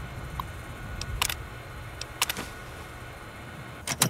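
Keys click on a computer terminal.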